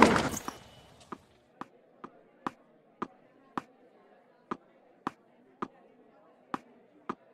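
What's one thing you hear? A tennis ball bounces repeatedly on a hard court.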